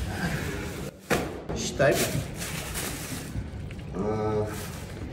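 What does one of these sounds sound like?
A bag rustles as it is handled.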